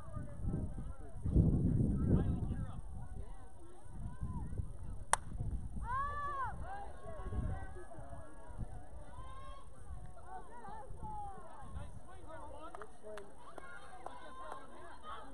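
Young players shout and cheer across an open field.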